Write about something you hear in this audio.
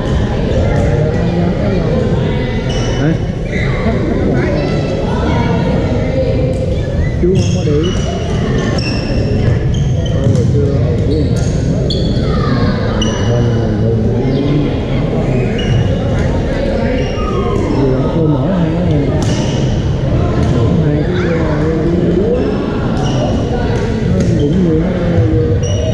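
Many men and women talk and call out around an echoing hall.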